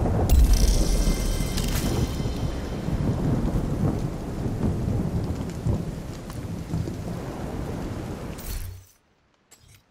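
A low rumble of battle noise rolls on and then cuts off.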